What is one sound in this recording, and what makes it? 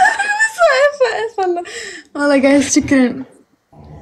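A young woman laughs over an online call.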